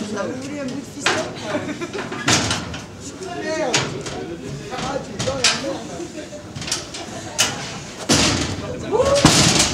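Men shout and talk loudly nearby.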